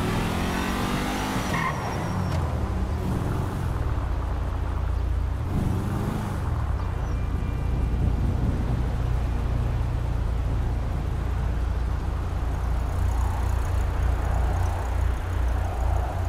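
A car engine roars steadily as the car drives.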